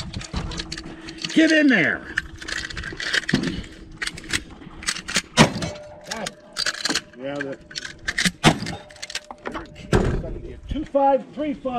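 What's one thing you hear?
Shells click as they are loaded into a shotgun close by.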